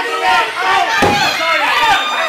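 A wrestler slams onto the ring mat with a heavy thud.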